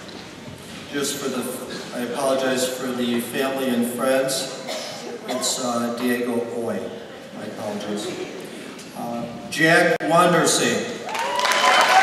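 A man reads out names through a loudspeaker in a large echoing hall.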